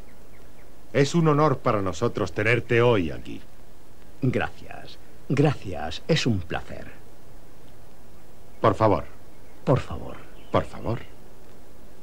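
A man speaks firmly at close range.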